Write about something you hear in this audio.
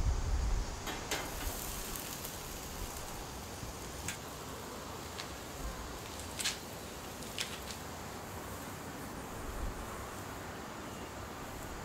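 Meat sizzles softly on a hot grill.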